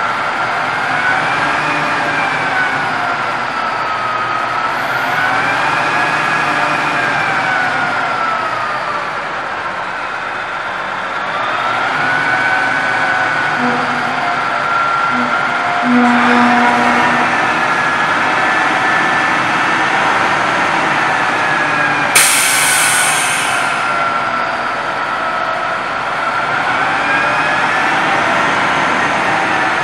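A hydraulic hoist whines, rising and falling in pitch as a large metal bin tilts up.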